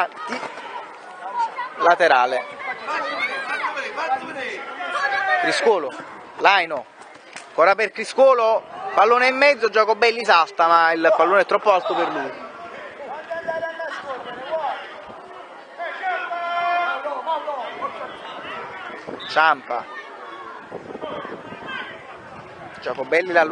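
Children shout and cheer excitedly nearby.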